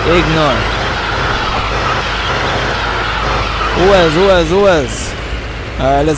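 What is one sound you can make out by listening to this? Tyres screech as a truck spins its wheels.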